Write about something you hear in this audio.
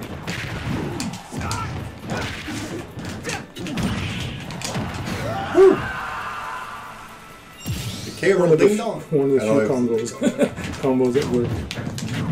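Game fighting sounds thump and whoosh with quick hits.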